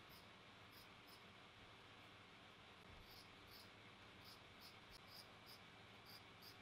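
Scissors snip through fabric with short, repeated crisp cuts.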